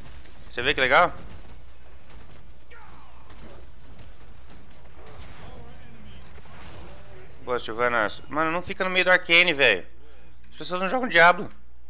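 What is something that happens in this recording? Magic blasts and laser zaps crackle in a game battle.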